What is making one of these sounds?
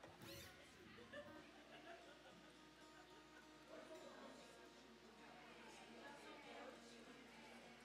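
An acoustic guitar is strummed and picked.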